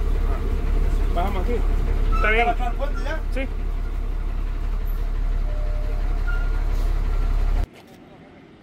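A bus engine rumbles loudly from inside the cab as the bus drives along.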